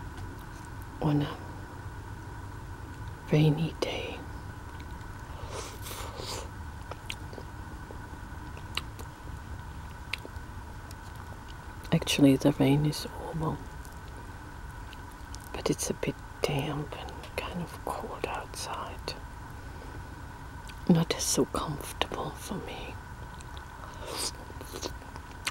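A woman whispers softly close to a microphone.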